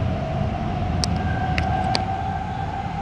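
A makeup compact clicks open and shut close by.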